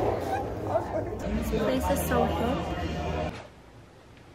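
A young woman talks close up with animation.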